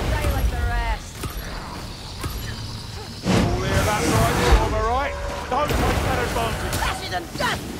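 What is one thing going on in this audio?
A fire spell whooshes and crackles.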